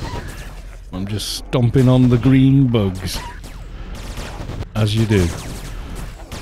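A man speaks loudly and with animation into a microphone.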